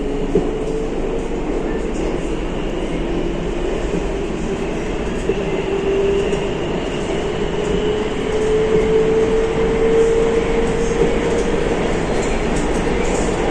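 A train motor whines, rising and falling in pitch.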